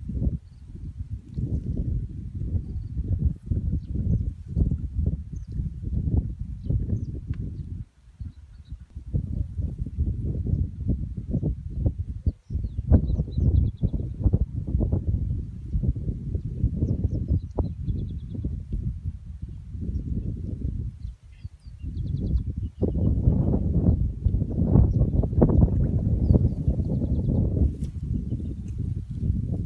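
Wind blows and rumbles outdoors.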